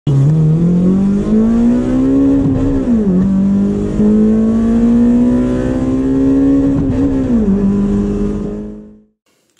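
A car engine revs up slowly and drops back twice, then cuts off.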